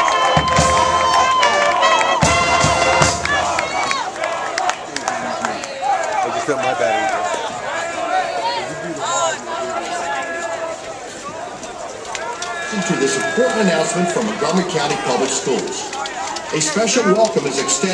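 A marching band plays brass and woodwind music outdoors.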